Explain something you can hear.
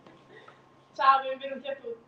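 A young woman speaks up loudly and brightly.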